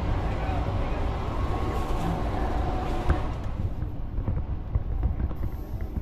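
A train rumbles and hums steadily as it glides along the track.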